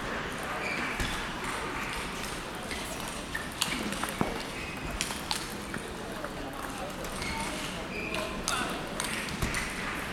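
A table tennis ball clicks back and forth off paddles and a table in a large echoing hall.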